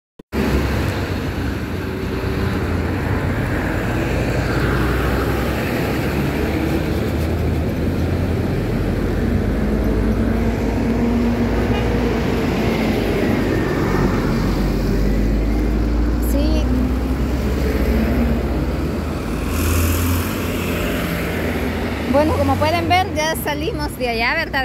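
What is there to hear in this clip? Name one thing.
Heavy traffic rumbles past close by.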